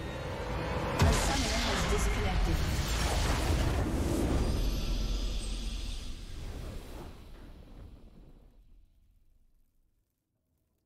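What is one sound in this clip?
A triumphant victory fanfare swells and fades out.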